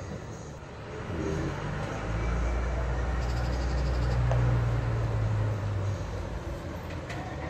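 A bus engine rumbles as the bus drives slowly closer.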